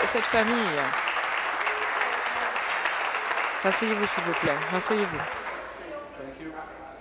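A crowd applauds loudly and then fades.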